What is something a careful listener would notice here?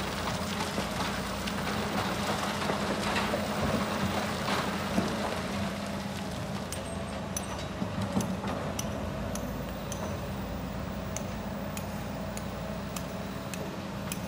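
Rocks clatter as an excavator bucket dumps them into a truck.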